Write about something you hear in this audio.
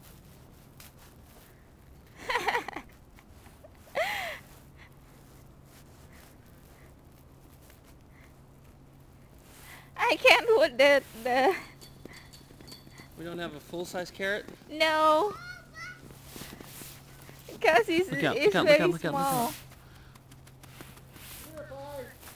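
Gloved hands press and pack snow with a soft crunch.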